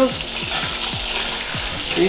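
Dry beans rattle as they pour into a metal pot.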